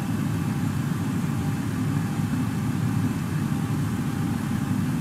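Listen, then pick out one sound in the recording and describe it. Aircraft engines drone with a steady low rumble.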